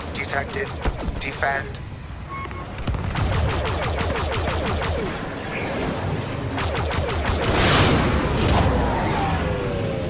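Spacecraft engines roar past.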